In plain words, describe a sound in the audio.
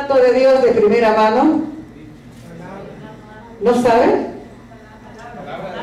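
A woman sings passionately into a microphone, heard through loudspeakers in an echoing room.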